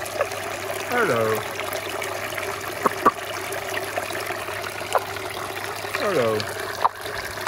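A frog gives short croaking calls.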